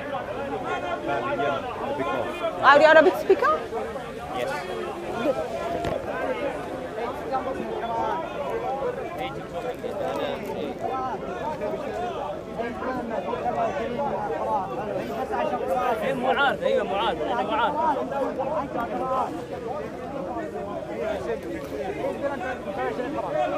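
Several men talk and argue with animation, close by, outdoors.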